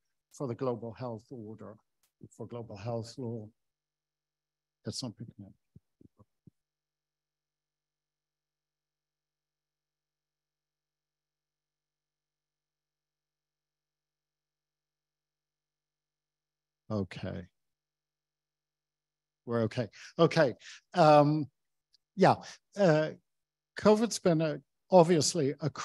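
An older man speaks calmly into a microphone, with long pauses.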